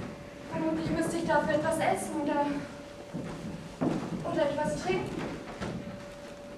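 A young woman speaks expressively on a stage, heard from across a hall.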